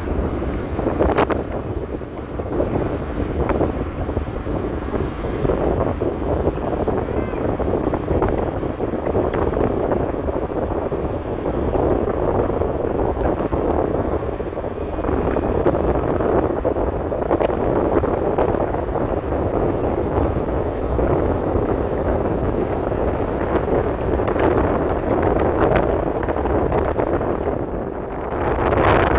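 Tyres rumble on asphalt.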